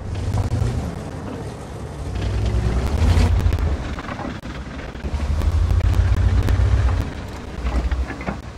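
A tank engine rumbles low and surges as the tank drives.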